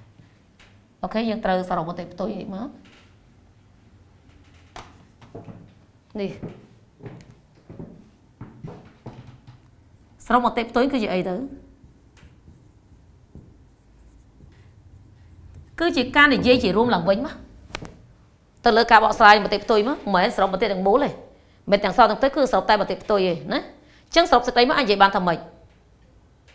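A woman speaks calmly in bursts in a room with some echo.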